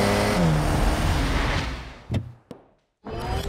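A car engine roars as it speeds past and fades.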